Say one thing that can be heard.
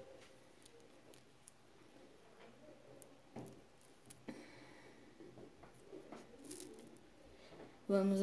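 Small glass beads click softly against each other.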